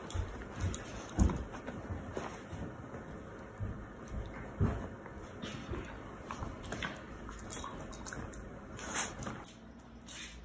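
Two dogs wrestle and tumble, thumping against a cushion.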